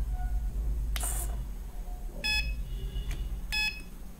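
A push button clicks.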